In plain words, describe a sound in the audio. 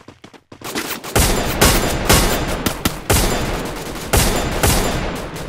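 A sniper rifle fires single shots.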